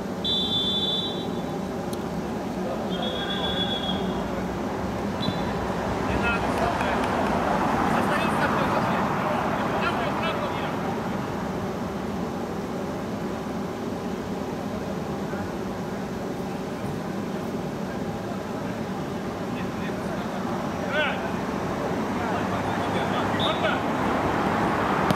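Spectators murmur and chatter nearby.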